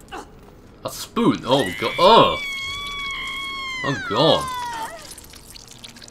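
A man cries out in pain.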